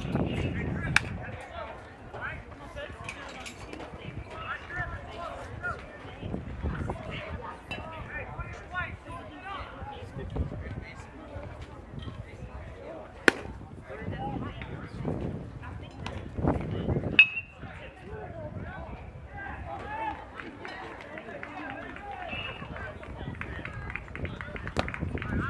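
Players and spectators chatter and call out outdoors.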